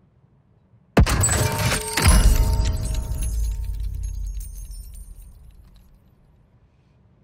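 A loud alert chime rings out and slowly fades.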